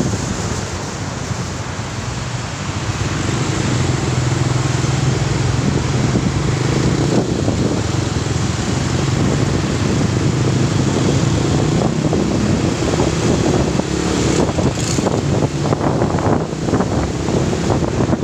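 Other vehicles' engines rumble close by in traffic.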